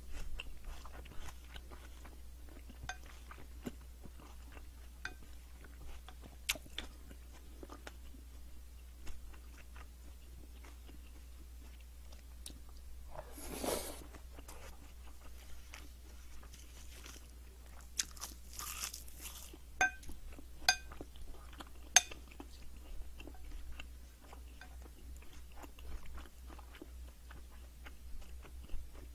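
A wooden spoon clinks and scrapes on a ceramic bowl while mixing rice.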